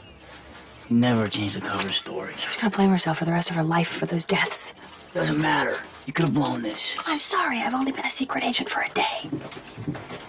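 A young woman speaks earnestly and close by.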